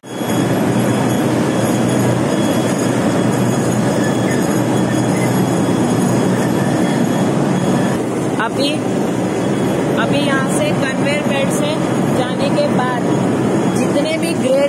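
Factory machinery rumbles and clatters loudly and steadily.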